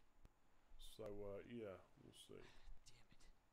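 A man curses under his breath in frustration.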